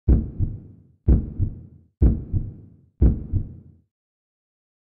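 Martial artists kick and punch, their uniforms snapping.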